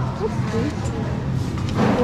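Plastic yogurt cups clatter as a hand lifts them from a shelf.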